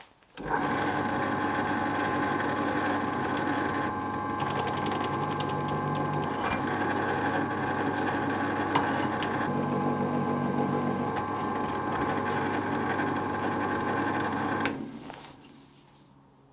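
A drill press motor hums steadily, then winds down.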